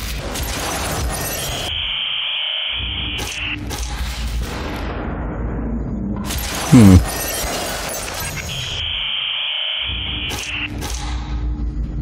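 Loud electronic static hisses and crackles.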